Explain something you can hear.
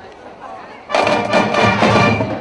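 A marching band suddenly starts playing loudly.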